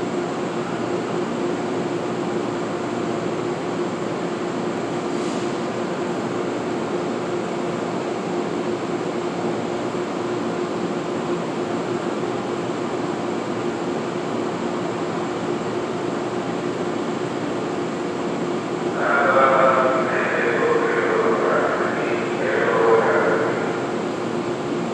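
A stopped train hums steadily in a large echoing space.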